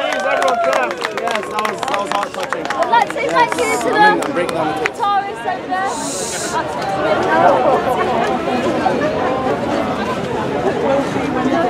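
Young women and men chatter and laugh close by.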